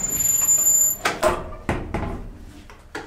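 An elevator door slides and bangs shut.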